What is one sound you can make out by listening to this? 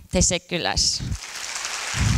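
A young woman speaks through a microphone in a large echoing hall.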